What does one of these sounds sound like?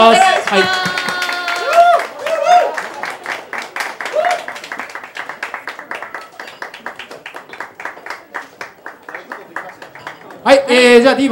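A woman claps her hands quickly and steadily.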